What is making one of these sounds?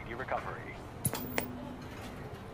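A television crackles with a short burst of static.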